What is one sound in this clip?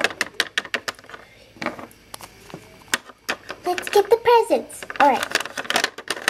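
Small plastic toys tap against a hard surface.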